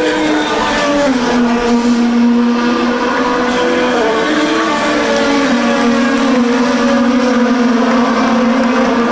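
Racing car engines whine loudly as the cars speed past, their pitch sliding down.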